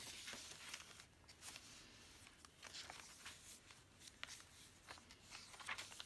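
Paper pages rustle and flap as they are turned by hand.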